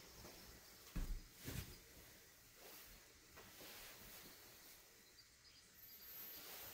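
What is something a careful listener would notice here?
Small objects clack softly.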